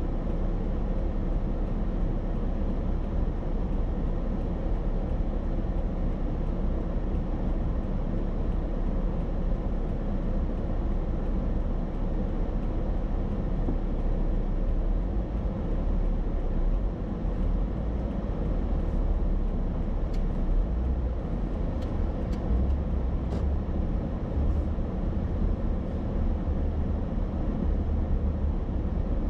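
A car engine hums low and steady from inside the vehicle.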